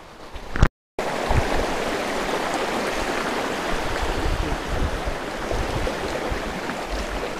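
A shallow stream rushes steadily over rocks close by.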